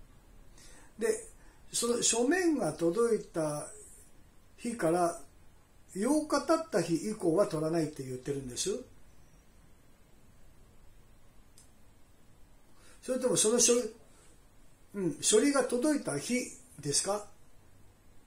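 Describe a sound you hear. A middle-aged man talks calmly into a phone, close by, pausing between phrases.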